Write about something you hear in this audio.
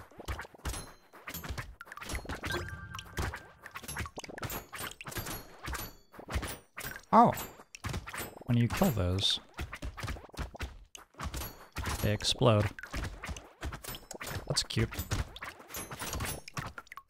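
Video game weapons fire in rapid bursts of short popping shots.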